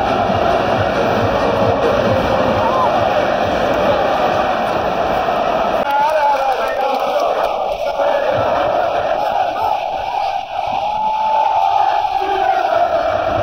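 A large stadium crowd sings and chants loudly all around.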